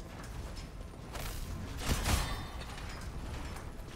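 Electric blasts crackle.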